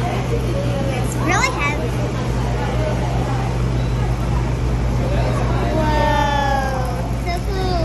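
A second young girl answers with animation.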